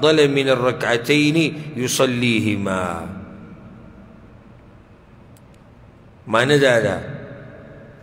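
A man recites in a slow, melodic chant through a microphone, in a room with a slight echo.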